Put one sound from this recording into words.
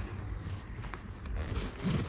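A zipper rasps open.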